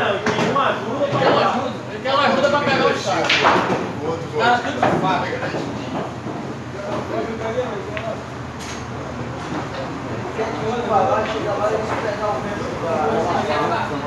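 Young men talk loudly and with animation nearby.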